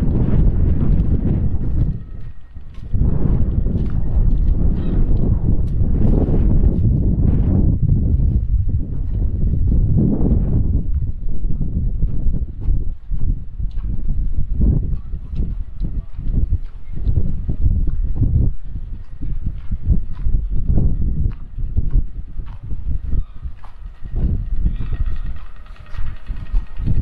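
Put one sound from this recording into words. Wind blows roughly outdoors.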